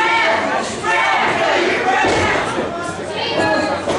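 A wrestler's body thuds onto a wrestling ring mat.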